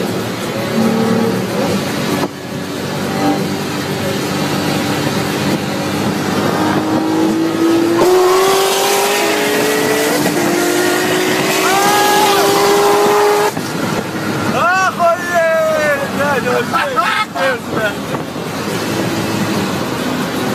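Tyres and wind roar steadily at highway speed.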